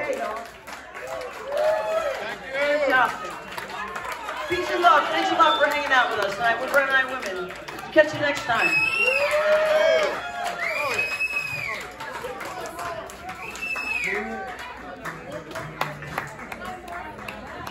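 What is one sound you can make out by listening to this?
A crowd cheers and whoops loudly nearby.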